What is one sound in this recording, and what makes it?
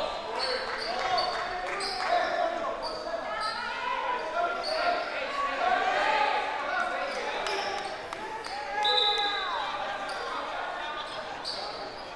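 Players and spectators shout and call out in a large echoing gym.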